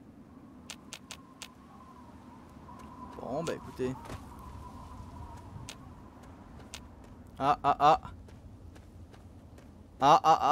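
Footsteps crunch over rough, stony ground.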